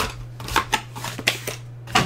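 A cardboard box is picked up and knocks against a table.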